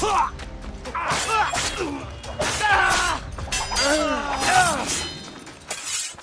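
Steel blades clash and ring in a fight.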